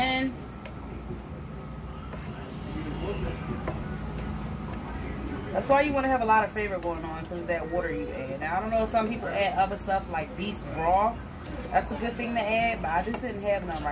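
A spatula scrapes and stirs vegetables in a frying pan.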